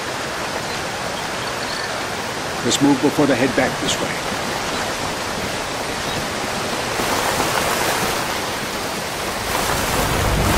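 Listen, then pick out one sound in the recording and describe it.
Water pours down steadily in a nearby waterfall.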